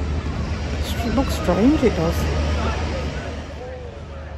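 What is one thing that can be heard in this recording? A woman speaks close to the microphone.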